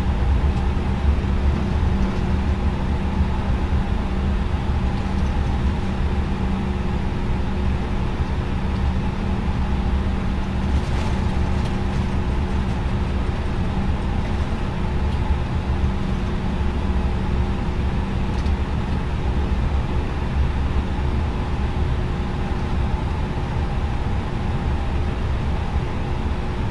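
Jet engines hum steadily at low power as an airliner taxis.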